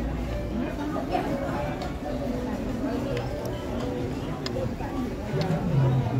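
An elderly woman talks close by.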